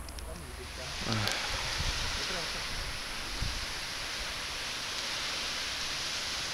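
Gentle waves wash onto a shore.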